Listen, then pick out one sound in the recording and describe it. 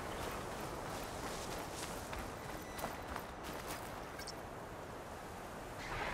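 Footsteps crunch on gravel as a character runs.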